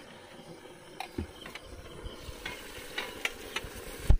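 A metal spatula scrapes and taps against a metal plate.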